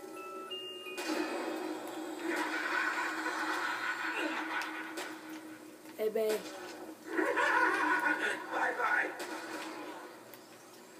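Gunfire from a video game crackles through a television speaker.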